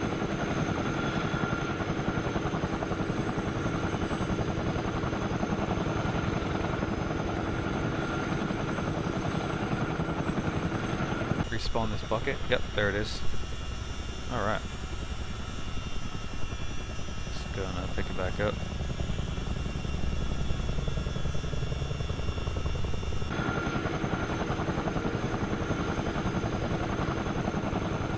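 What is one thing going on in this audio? A helicopter's rotors drone loudly and steadily.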